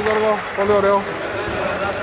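A referee blows a whistle in short blasts.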